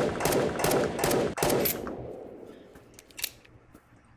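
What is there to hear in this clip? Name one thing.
A gun clicks as it is reloaded.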